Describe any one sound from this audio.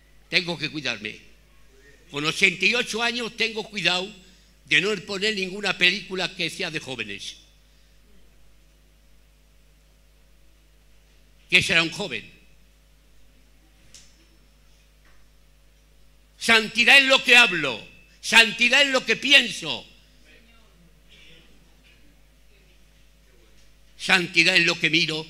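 An elderly man speaks with animation into a microphone, in bursts with long pauses.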